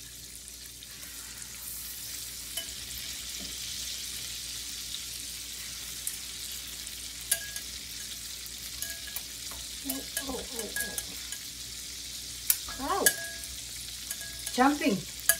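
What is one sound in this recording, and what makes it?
Fish sizzles in hot oil in a pan.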